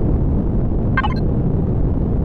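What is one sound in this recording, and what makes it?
A short electronic chime sounds as a menu opens.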